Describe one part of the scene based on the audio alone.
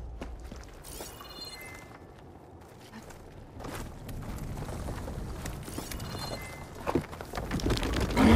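Footsteps crunch on loose gravel and rock.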